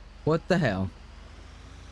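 A man speaks loudly and briefly into a close microphone.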